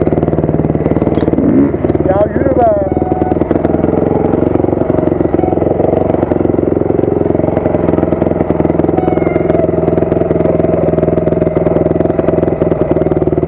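A dirt bike engine runs loud and close, throbbing as it rides.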